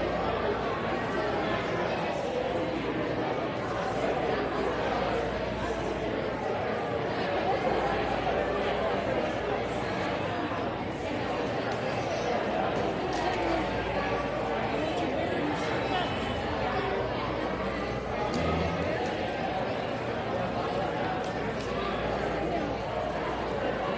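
A band plays music.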